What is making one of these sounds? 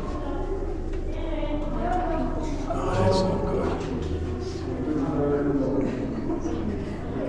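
Adults talk and call out nearby, their voices echoing off close stone walls.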